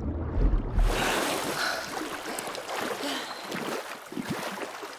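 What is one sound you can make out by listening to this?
Water splashes and laps as a swimmer reaches the surface.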